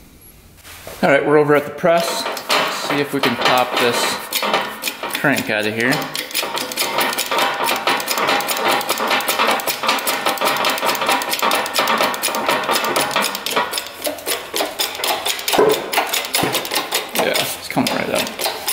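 A drill press runs, its motor whirring.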